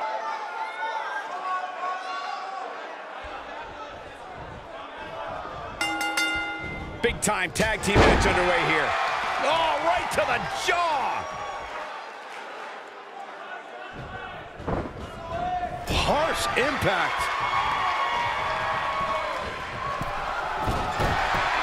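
A large crowd cheers and murmurs in an arena.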